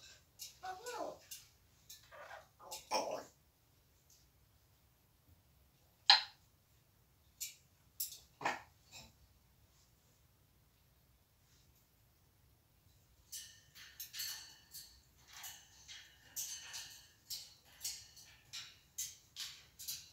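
Birds in a cage chirp and squawk nearby.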